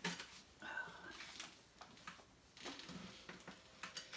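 Fur and clothing rustle as a cat is handled.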